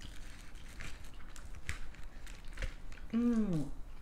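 A plastic fork clicks and scrapes on food close up.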